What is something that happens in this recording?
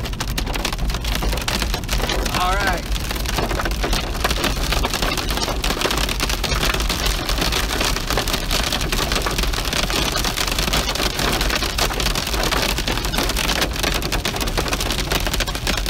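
Windscreen wipers swish back and forth.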